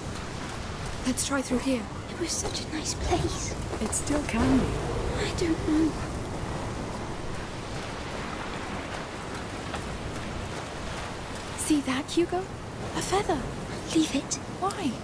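A young woman speaks calmly.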